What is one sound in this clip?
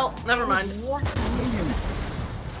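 An explosion bursts loudly in a game.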